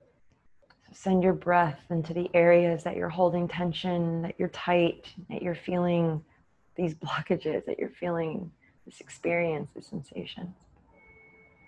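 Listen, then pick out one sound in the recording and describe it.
A young woman speaks calmly and close through a microphone.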